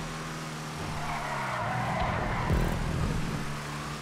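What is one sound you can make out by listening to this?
Tyres screech on asphalt through a tight bend.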